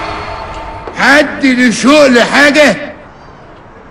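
An elderly man shouts loudly in long, drawn-out cries.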